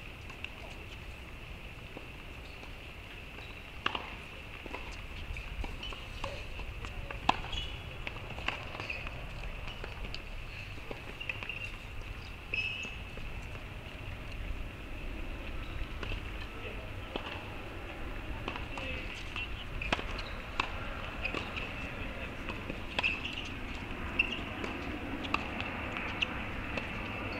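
Wind blows across an open outdoor space.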